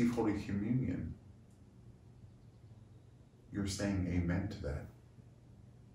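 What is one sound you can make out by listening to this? An older man speaks calmly and close to a microphone, in short phrases.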